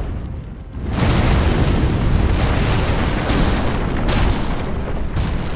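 A huge beast crashes and thuds heavily.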